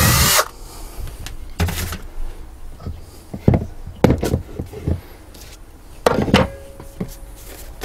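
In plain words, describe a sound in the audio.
Wooden blocks knock and clatter on a countertop.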